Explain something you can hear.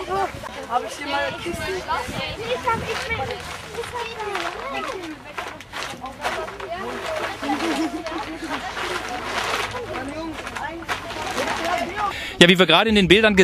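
Girls talk and laugh close by.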